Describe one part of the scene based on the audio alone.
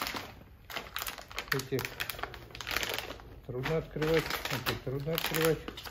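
Plastic packaging crinkles in a man's hands.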